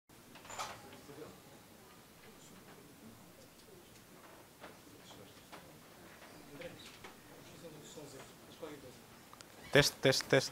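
A man speaks at a distance in a large echoing hall.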